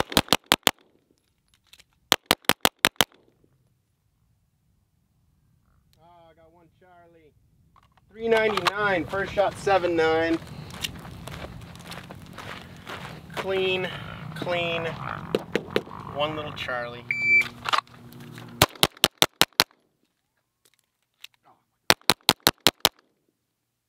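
A pistol fires quick bursts of shots outdoors.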